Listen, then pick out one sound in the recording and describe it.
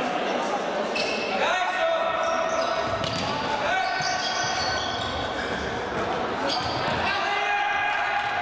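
Sneakers squeak sharply on a hard indoor court in an echoing hall.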